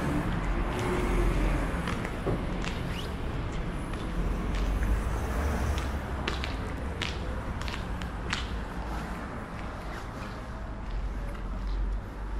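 Cars drive past on a nearby street.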